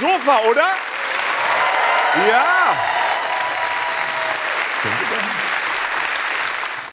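An audience applauds and cheers in a large room.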